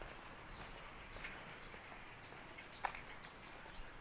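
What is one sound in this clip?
A bicycle rolls past on a paved street.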